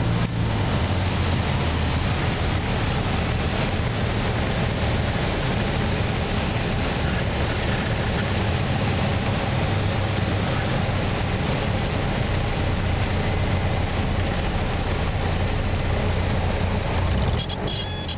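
A small propeller plane's engine drones loudly and steadily from inside the cabin.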